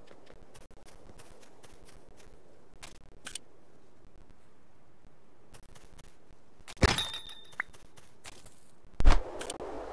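Blocks click as they are placed in a game.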